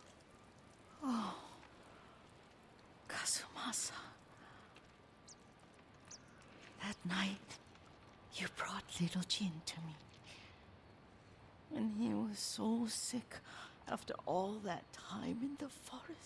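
An elderly woman speaks softly and warmly, in short phrases with pauses.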